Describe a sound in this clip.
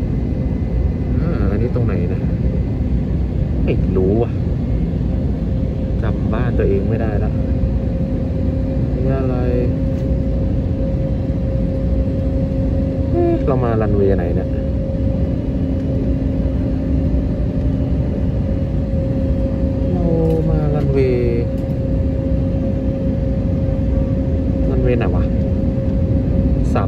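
An aircraft engine drones steadily and loudly.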